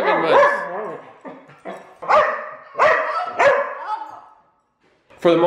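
Dogs bark and yelp while playing.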